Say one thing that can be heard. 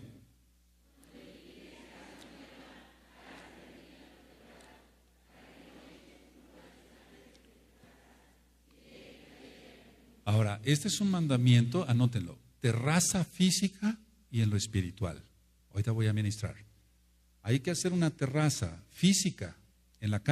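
An older man speaks into a microphone, quietly at first and then loudly and with animation.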